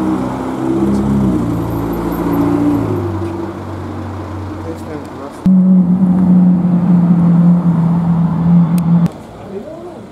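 A sports car engine rumbles with a deep, steady drone.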